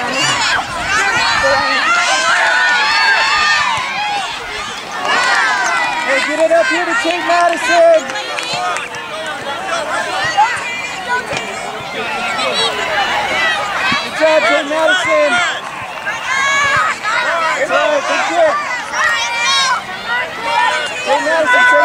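A crowd of spectators cheers and shouts excitedly outdoors.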